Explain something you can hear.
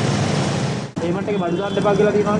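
A man speaks calmly through a mask, close by.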